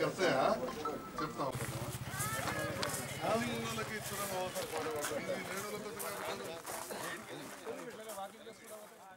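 A crowd of men chatter outdoors.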